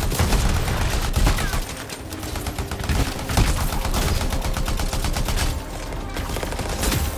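Rapid gunfire crackles in quick bursts.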